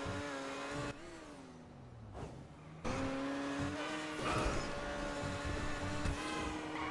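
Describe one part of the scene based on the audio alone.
A sports car engine revs hard.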